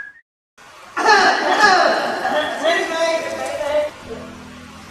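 A group of men sings together.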